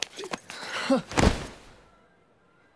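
A young man thuds down onto the floor.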